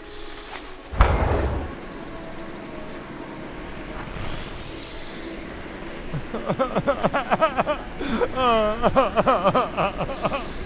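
A rocket engine roars and hums.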